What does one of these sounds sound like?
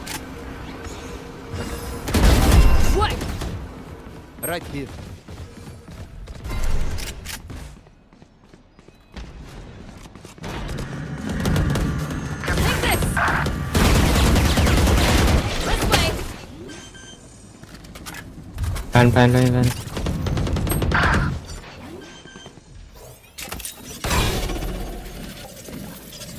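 Loud magical ability blasts whoosh in a video game.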